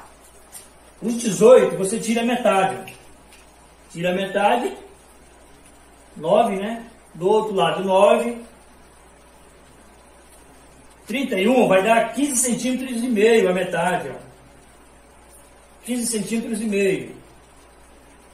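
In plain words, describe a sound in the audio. A young man speaks calmly and close by, in short phrases with pauses.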